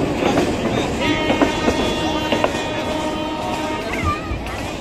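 A train horn sounds with a steady blare.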